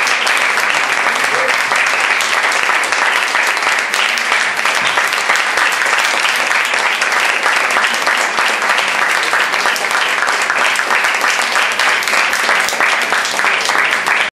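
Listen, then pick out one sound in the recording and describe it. Distorted electric guitars play loudly in a rock band.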